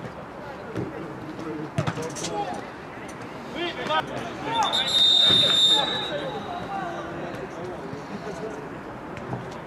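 Men shout across an open pitch.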